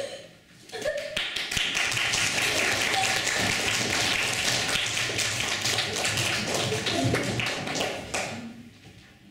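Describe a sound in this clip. A group claps loudly.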